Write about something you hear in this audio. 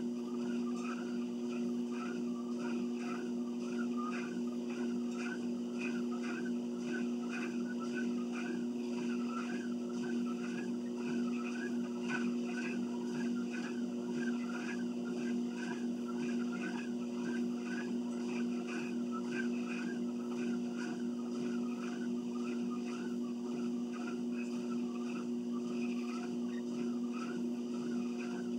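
A treadmill motor whirs with a steady hum.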